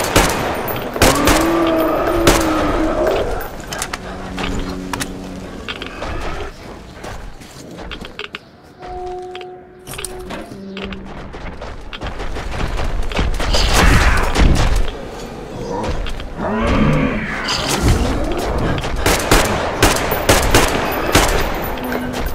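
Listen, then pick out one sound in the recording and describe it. A creature roars and growls.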